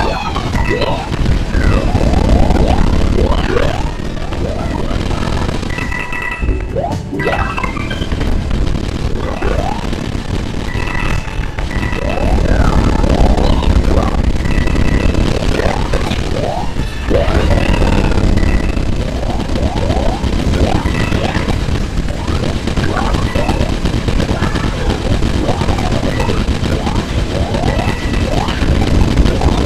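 Springy cartoon jump sounds from a video game chirp upward again and again.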